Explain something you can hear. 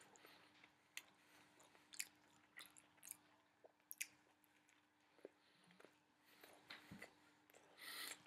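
A middle-aged man chews food with his mouth open, close by.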